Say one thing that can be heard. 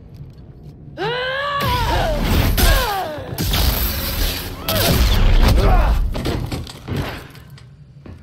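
A man exclaims loudly into a microphone.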